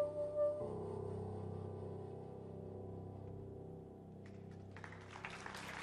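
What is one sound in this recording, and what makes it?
A soprano saxophone plays a melody that ends on a long held note.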